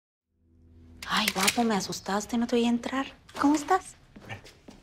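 A young woman speaks cheerfully nearby.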